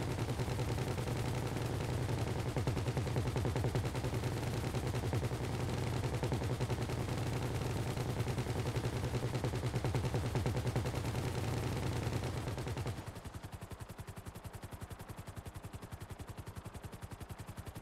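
A helicopter engine roars loudly, then quiets down.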